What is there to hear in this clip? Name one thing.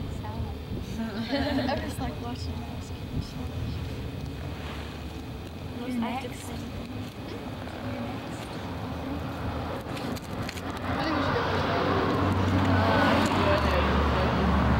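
Two young women talk quietly nearby.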